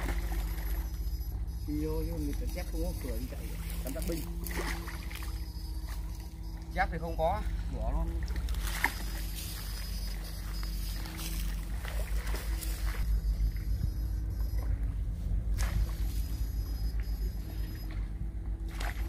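Water sloshes and splashes as a man wades through it.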